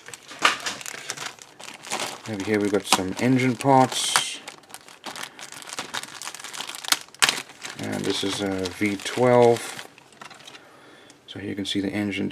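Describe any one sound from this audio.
A plastic bag crinkles and rustles as it is handled close by.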